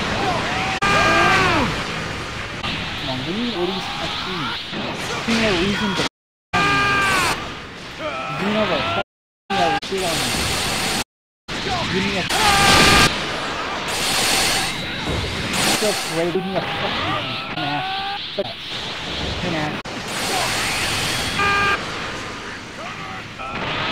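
Energy blasts whoosh and boom in a video game.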